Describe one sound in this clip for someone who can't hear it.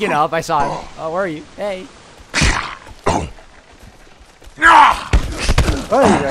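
A club strikes a body with heavy thuds.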